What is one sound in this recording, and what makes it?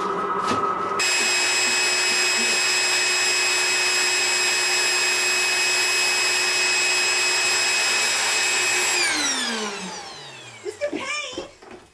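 A record player plays a steady tone that drags down in pitch and stops.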